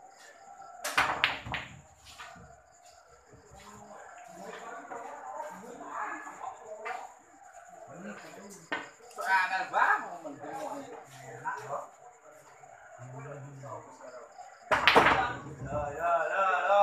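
Pool balls clack against each other and roll across the table.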